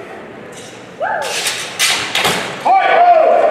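Wooden practice swords clack together sharply.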